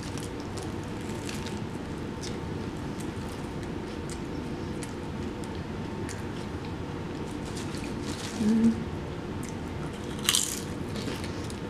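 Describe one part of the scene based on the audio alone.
A young woman chews food noisily, close to the microphone.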